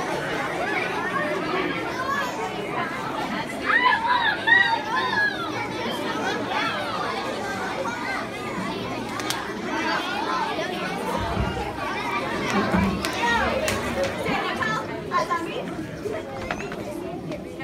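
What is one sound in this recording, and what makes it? Many young children chatter and call out all at once in a large echoing hall.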